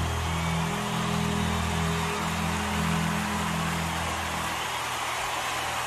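A large crowd cheers and applauds.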